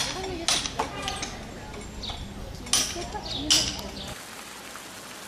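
A hammer taps sharply on brick.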